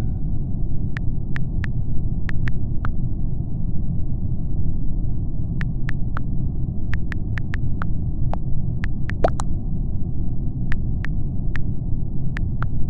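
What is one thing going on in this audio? Soft clicks sound as keys are tapped on a touch keyboard.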